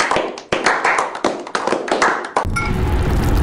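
A small group of men applauds.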